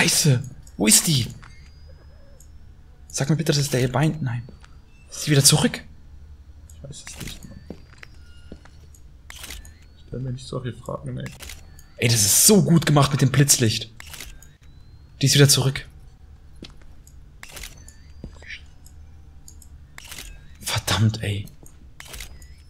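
A young man talks and exclaims loudly into a microphone in short bursts.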